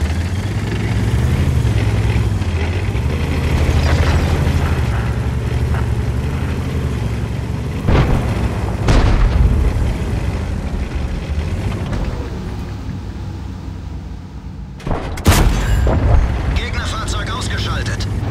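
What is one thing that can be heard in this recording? A tank engine rumbles and roars steadily.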